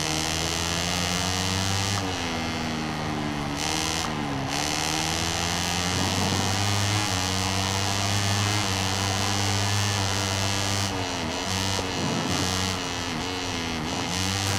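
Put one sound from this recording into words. A motorcycle engine roars loudly, rising and falling in pitch as it shifts gears.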